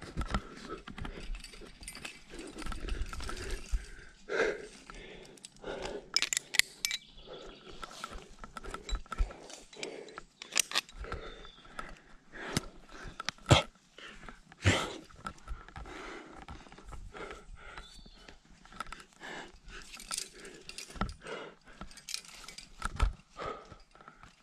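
Hands scrape and grip on rough rock.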